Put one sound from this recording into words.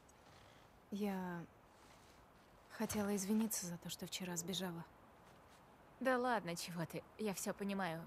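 Another young woman answers softly up close.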